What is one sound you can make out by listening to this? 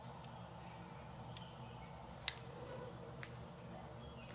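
A small tool clicks lightly as it is picked up.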